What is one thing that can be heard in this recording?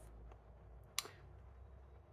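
A fingertip taps lightly on a card lying on a table.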